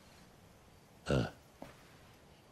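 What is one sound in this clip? A second man answers briefly in a low voice.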